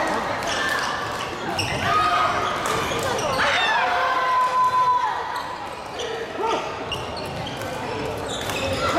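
A crowd of people chatter in the background.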